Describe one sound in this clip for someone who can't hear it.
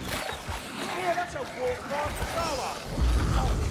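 Creatures snarl and shriek in pain.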